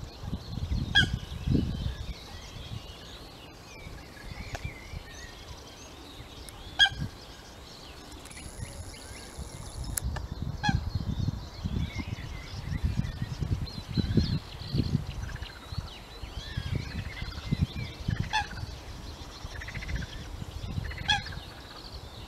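Birds call with short, sharp peeps now and then.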